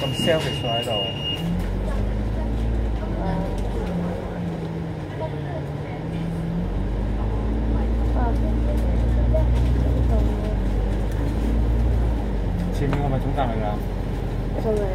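A bus engine hums and rumbles steadily while driving.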